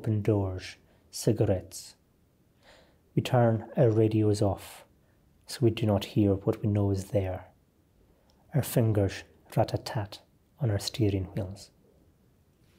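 A middle-aged man reads aloud calmly and clearly into a close microphone.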